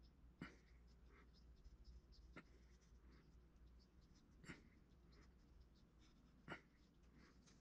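Fingers press and smooth soft modelling clay.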